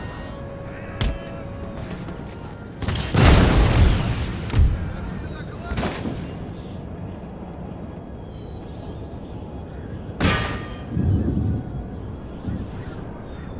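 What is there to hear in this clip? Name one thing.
Musket volleys crack and rumble in loud bursts.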